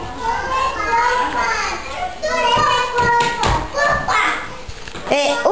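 Young children chatter and call out close by.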